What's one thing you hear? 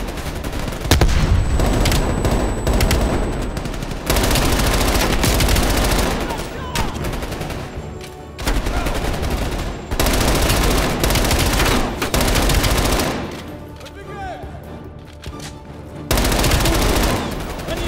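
A rifle fires rapid bursts in a large echoing hall.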